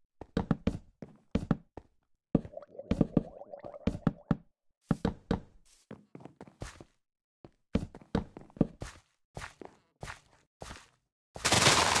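Blocks are set down with short, soft thuds.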